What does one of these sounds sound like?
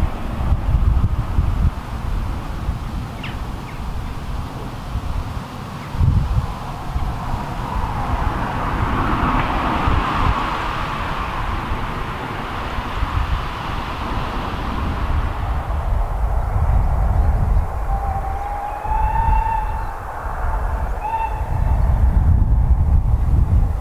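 Wind buffets loudly and steadily outdoors.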